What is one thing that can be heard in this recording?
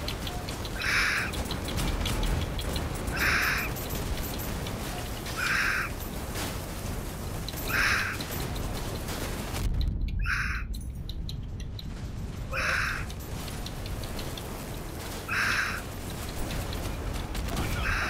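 Explosions burst and crackle with fire.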